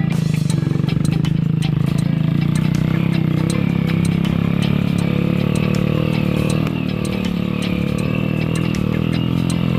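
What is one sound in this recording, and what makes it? A motorbike engine chugs steadily close by.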